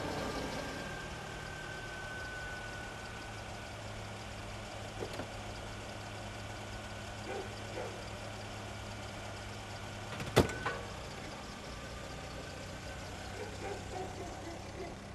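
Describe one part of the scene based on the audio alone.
A car engine idles steadily nearby.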